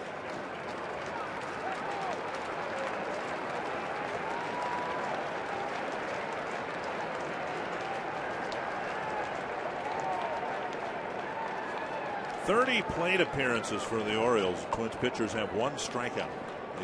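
A large ballpark crowd murmurs and chatters.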